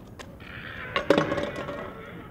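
A scooter crashes and clatters across the ground.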